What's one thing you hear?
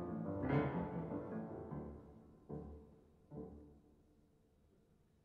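Two pianos play loud chords that ring out and fade in a large hall.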